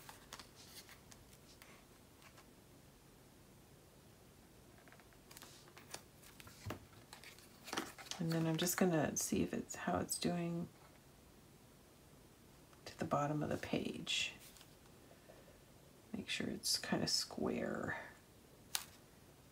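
Paper rustles and slides as hands arrange it.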